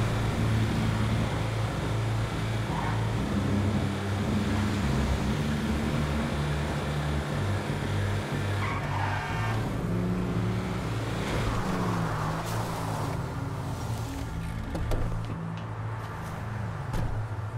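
A heavy vehicle's engine drones steadily as it drives.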